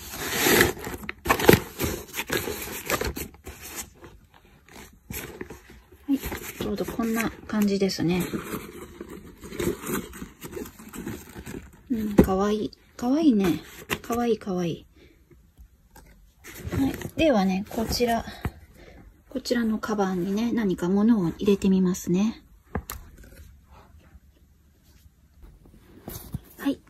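Nylon fabric rustles and crinkles as hands handle a bag.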